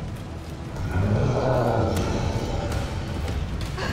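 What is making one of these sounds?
A monster growls deeply.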